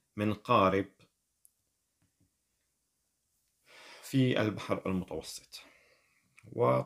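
A middle-aged man speaks calmly into a nearby microphone, with pauses.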